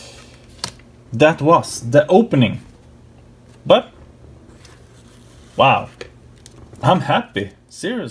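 Playing cards slide and rustle softly against each other.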